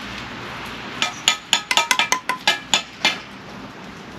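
A steel trowel taps a brick into place.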